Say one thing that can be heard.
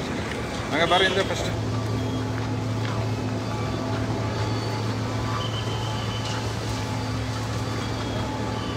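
A crowd of men talks and murmurs outdoors.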